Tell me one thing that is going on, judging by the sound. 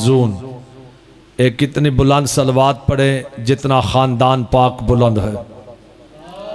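A man speaks with passion into a microphone, his voice loud and ringing through a loudspeaker.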